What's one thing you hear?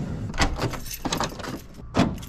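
A door latch clicks.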